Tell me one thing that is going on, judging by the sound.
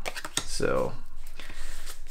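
Playing cards rustle and slide against each other in hands.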